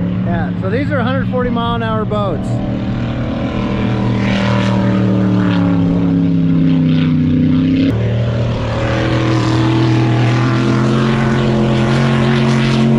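A racing boat engine roars loudly across open water.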